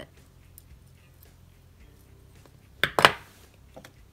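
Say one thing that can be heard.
Metal pliers click as they crimp a small metal clasp.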